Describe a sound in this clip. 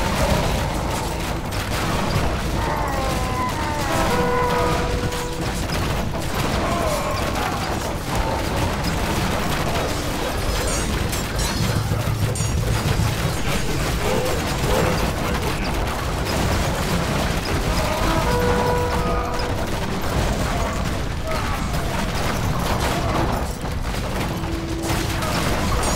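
Heavy stones thud as catapults hurl them.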